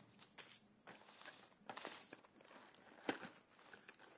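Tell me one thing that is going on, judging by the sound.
A cardboard box lid scrapes open.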